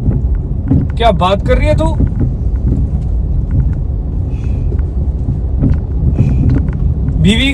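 A car engine hums low and steady inside a moving car.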